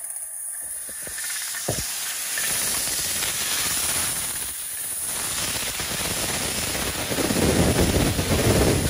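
A laser cutter hisses steadily as it cuts through sheet metal.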